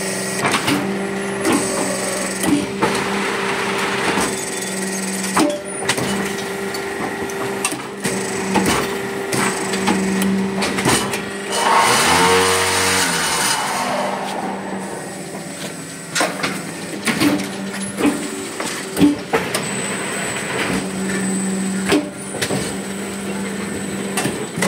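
A block-making machine hums and vibrates steadily.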